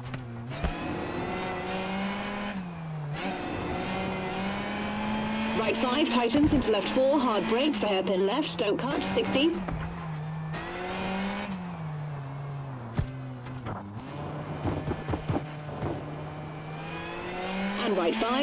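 A rally car engine roars, rising and falling as gears shift.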